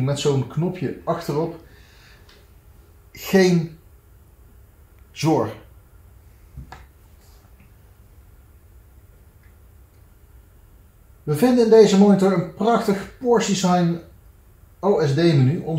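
A man talks calmly, close by, in short bursts.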